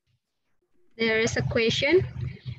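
A woman speaks with animation through an online call.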